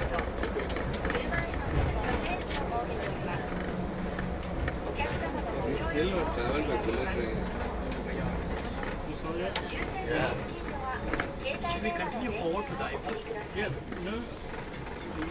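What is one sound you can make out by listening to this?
A train rumbles and hums steadily as it rolls along.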